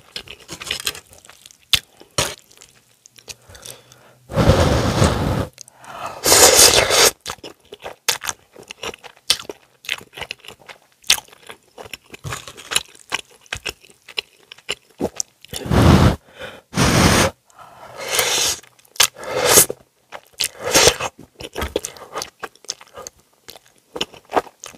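Chopsticks click against a pan.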